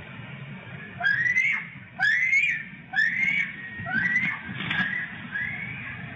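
An eagle calls with shrill, chattering cries nearby.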